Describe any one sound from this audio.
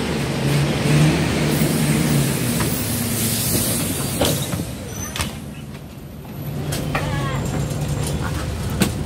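A bus engine rumbles and hums steadily.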